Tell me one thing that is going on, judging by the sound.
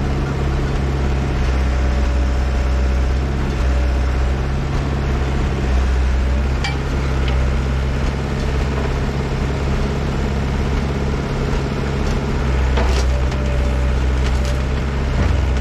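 A diesel engine of heavy machinery rumbles steadily nearby.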